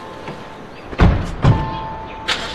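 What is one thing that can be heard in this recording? Car doors slam shut.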